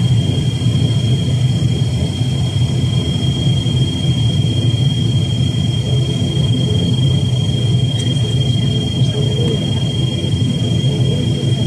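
A propeller engine drones loudly and steadily with a high, constant whine.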